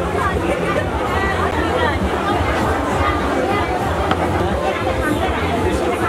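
Men and women chatter together close by.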